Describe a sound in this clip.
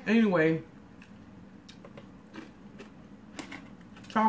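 A woman chews crunchy chips close to the microphone.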